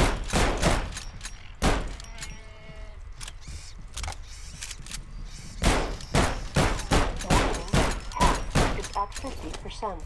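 Gunfire from a video game rattles in quick bursts.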